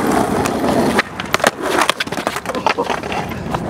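A skater thuds onto the pavement.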